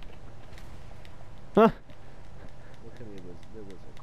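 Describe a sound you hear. Footsteps crunch on dry grass as a man climbs a slope.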